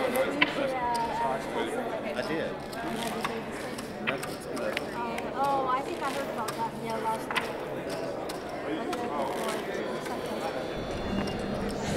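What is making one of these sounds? Poker chips click against each other.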